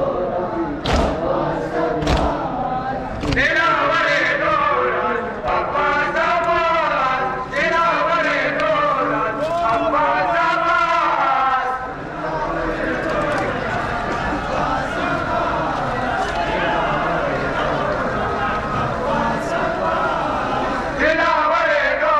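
A large crowd of men chants loudly together outdoors.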